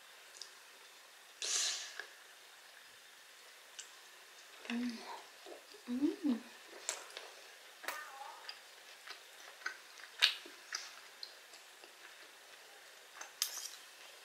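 A young woman chews food wetly and smacks her lips close to a microphone.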